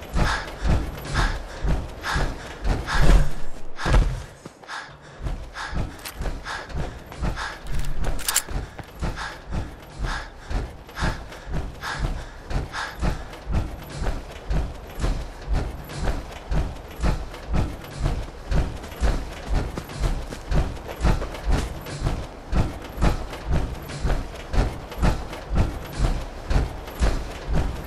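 Heavy metal footsteps clank and thud at a steady walking pace.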